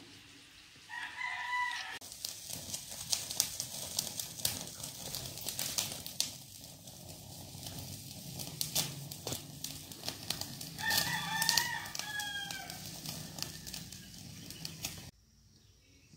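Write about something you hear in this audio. Meat crackles and sizzles over a hot burner.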